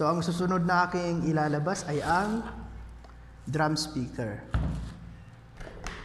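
Cardboard scrapes and thumps as a box is opened.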